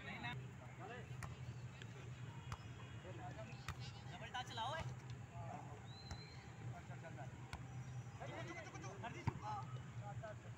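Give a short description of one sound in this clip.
A volleyball is struck by hand with a dull slap.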